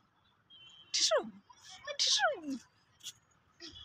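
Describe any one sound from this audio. A toddler squeals loudly outdoors.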